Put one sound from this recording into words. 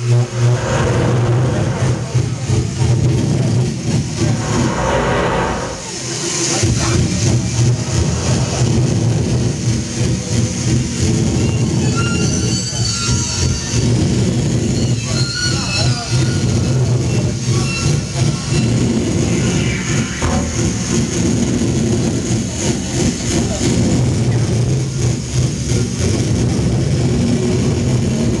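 An electric guitar plays loud and distorted through an amplifier.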